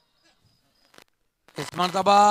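A cricket bat knocks a ball.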